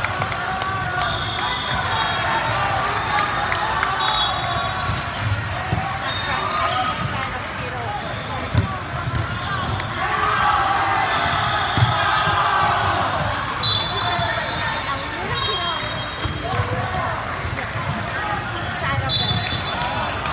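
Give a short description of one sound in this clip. Many people talk and call out in a large echoing hall.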